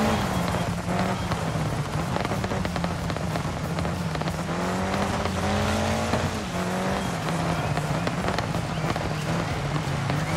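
Tyres crunch and skid over loose gravel.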